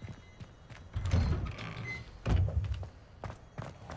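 A heavy wooden door swings open with a deep rumble.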